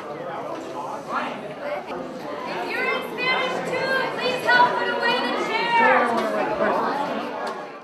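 A crowd of teenagers chatters close by indoors.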